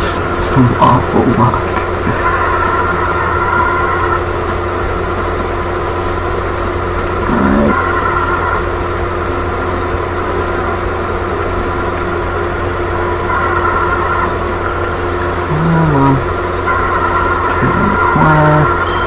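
A go-kart engine hums steadily as the kart races along.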